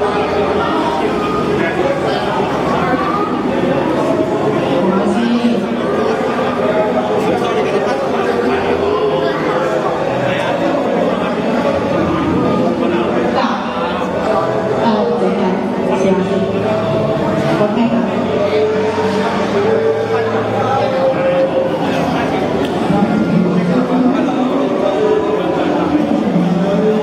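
A young woman sings into a microphone, heard through a loudspeaker outdoors.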